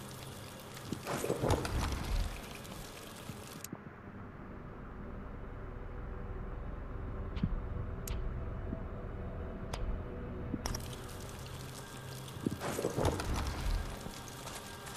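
A magical whoosh flares up and fades.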